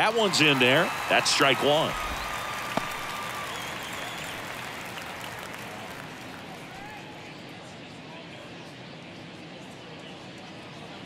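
A large crowd murmurs and cheers in an open stadium, slowly fading.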